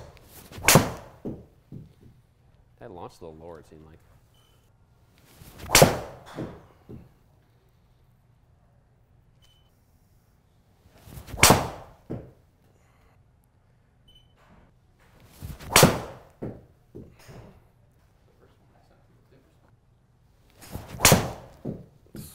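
A golf club strikes a ball with a sharp crack, echoing briefly in an enclosed room.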